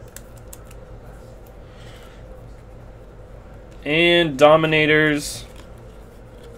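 Trading cards rustle and flick softly as they are shuffled by hand.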